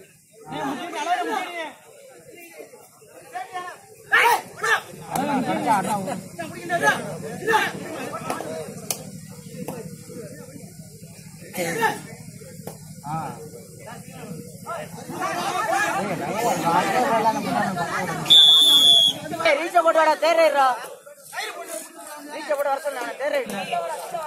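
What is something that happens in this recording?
A crowd of men shouts and cheers outdoors.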